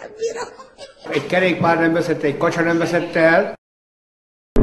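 An older man speaks with animation up close.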